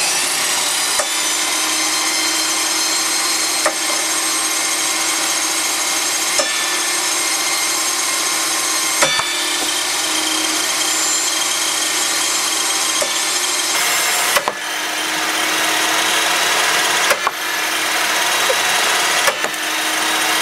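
Small wooden blocks are hit by a spinning saw blade with sharp knocks.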